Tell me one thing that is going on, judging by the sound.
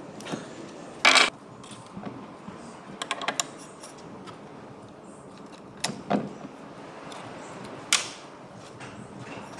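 Metal gears clank as they are lifted off a shaft.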